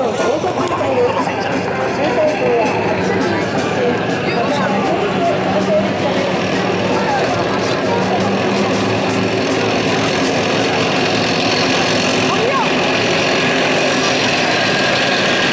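Tank tracks clatter and squeal on the ground.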